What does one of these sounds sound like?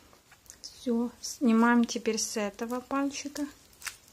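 Foil crinkles as it is pulled off a finger.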